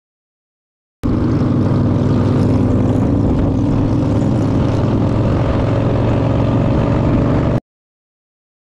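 A motorcycle engine drones steadily while riding.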